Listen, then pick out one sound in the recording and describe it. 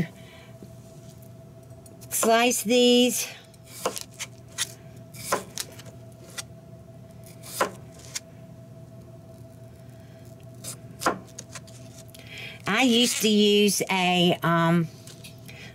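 A knife cuts through a potato and taps on a plastic cutting board.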